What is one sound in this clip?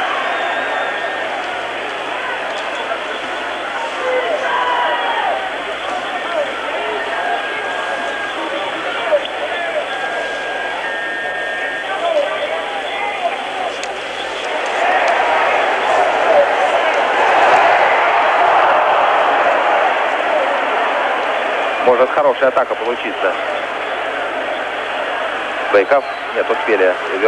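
A large crowd murmurs and cheers in a big echoing arena, swelling to a roar.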